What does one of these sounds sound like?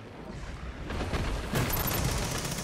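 Gunshots fire in rapid bursts nearby.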